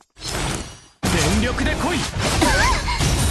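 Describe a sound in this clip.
Sword slashes whoosh and crackle with fiery bursts.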